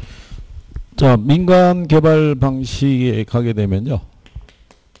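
A man speaks into a microphone, close and clear.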